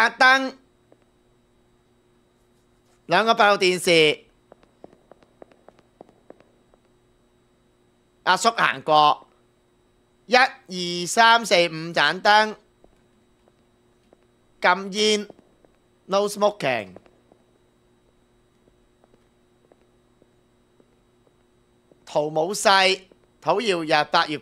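A young man talks with animation in short bursts, close to a microphone.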